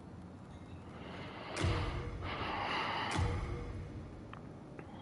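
A menu whooshes loudly as it opens.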